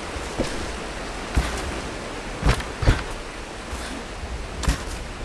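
Footsteps thud dully on wooden boards.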